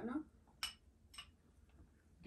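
Chopsticks and spoons clink against bowls.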